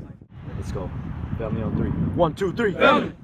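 A young man speaks loudly up close.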